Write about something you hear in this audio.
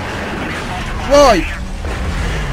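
A car crashes into debris with a loud bang.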